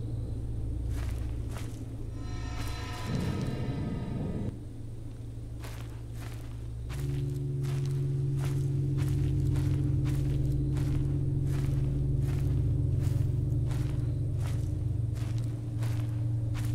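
Footsteps pad slowly along a path.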